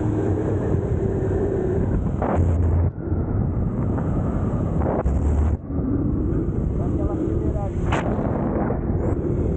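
Wind rushes loudly past close by.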